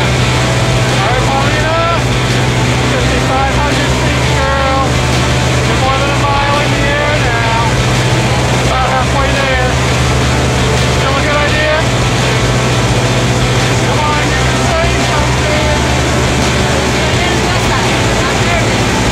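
A young woman talks and laughs close by over the engine noise.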